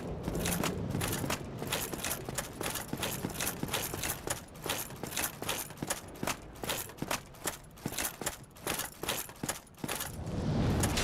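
Armoured footsteps run quickly on stone.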